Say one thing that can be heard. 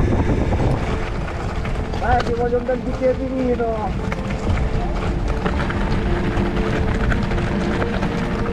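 Bicycle tyres rattle and crunch over a rough gravel track.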